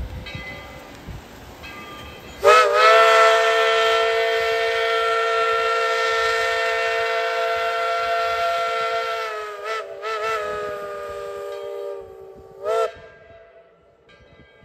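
A steam locomotive chugs past.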